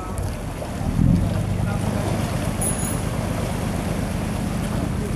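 A boat engine hums low and steady.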